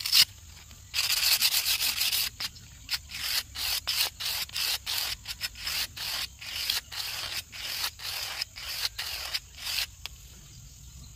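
A blade scrapes back and forth across a stone in quick rasping strokes.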